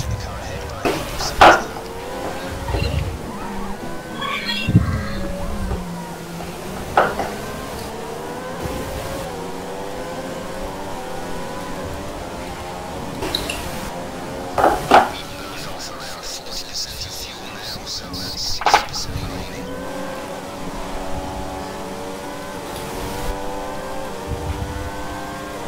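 A racing car engine whines loudly, its pitch climbing and dropping with gear changes.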